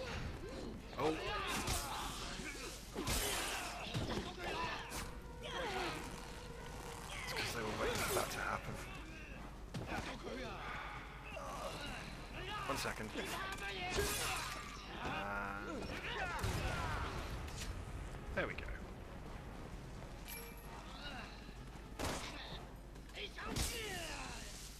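Creatures growl and snarl.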